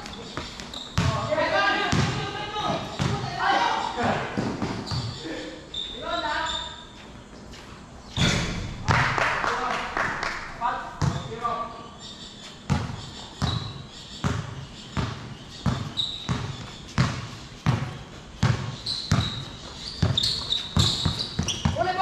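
A basketball bounces on a hard court, echoing under a roof.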